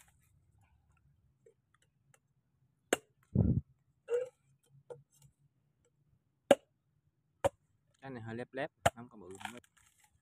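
A machete chops sharply into a coconut husk.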